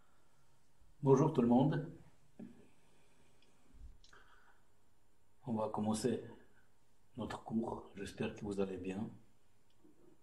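A man speaks calmly, close by, in short phrases.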